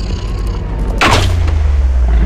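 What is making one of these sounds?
A gunshot rings out.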